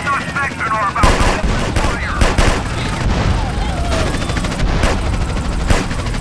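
An explosion booms and roars with fire.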